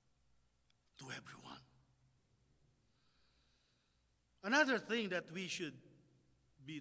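A man speaks into a microphone with animation.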